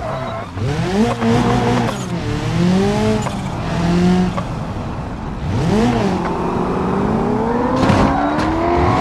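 A car engine revs up and down, rising and dropping in pitch as gears change.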